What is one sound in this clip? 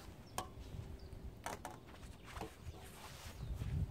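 A landing net's mesh rustles as it is lifted.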